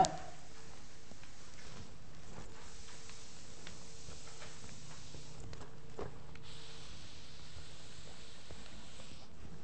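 A felt eraser wipes across a chalkboard.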